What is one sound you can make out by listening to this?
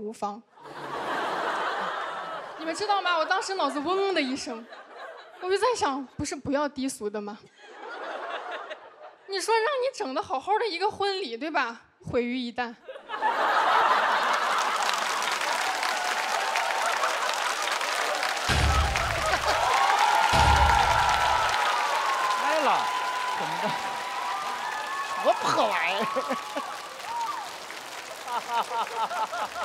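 A young woman speaks with animation through a microphone.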